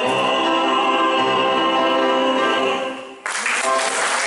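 A man sings loudly in an echoing hall, holding a long note.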